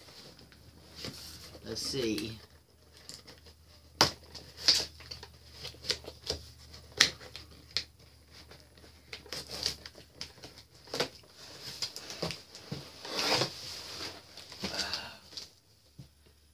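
Cardboard and tape crackle and rip as a box is opened.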